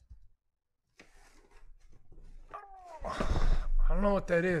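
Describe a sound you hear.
A cardboard box is handled and shifted, scraping close by.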